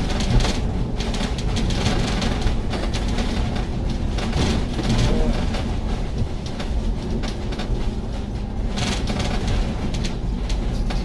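A bus engine rumbles steadily while the bus rolls along.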